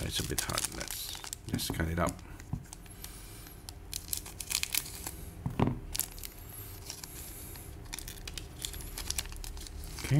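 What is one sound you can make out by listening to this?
A foil wrapper crinkles in someone's hands.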